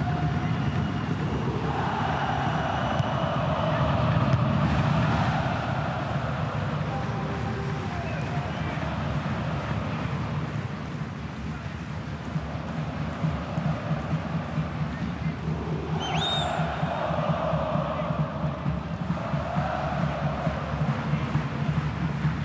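A large crowd cheers and chants steadily in an open stadium.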